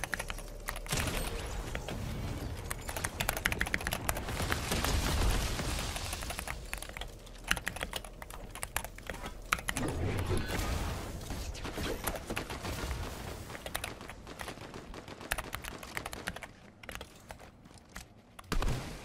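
Wooden walls snap into place with quick clicks in a video game.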